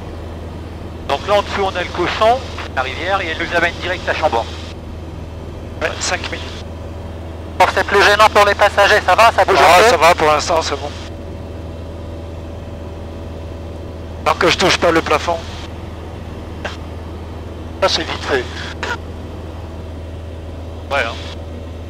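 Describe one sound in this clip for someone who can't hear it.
A small plane's engine drones steadily from inside the cockpit.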